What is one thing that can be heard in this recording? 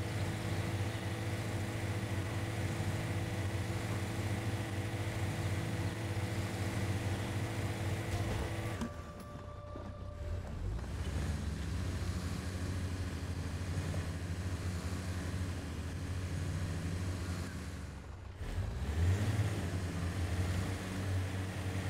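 Tyres crunch and grind over rough rock.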